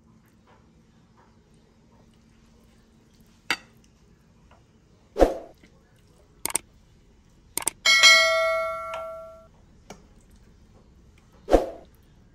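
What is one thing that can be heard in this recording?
A spoon knocks against a plate.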